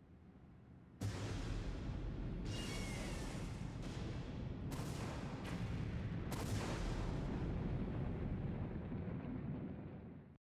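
A damaged aircraft roars as it falls through the sky.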